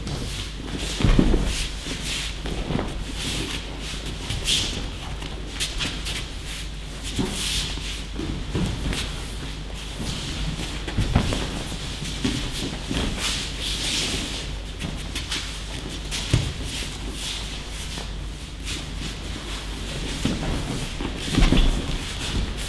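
Bodies thud onto a mat as people are thrown.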